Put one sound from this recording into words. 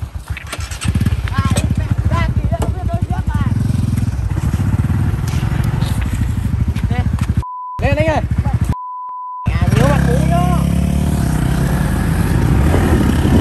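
A motorbike engine idles with a steady, rapid putter.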